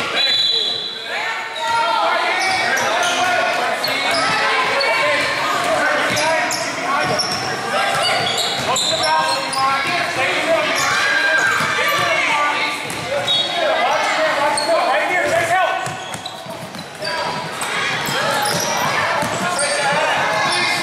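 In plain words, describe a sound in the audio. Sneakers squeak on the hardwood court.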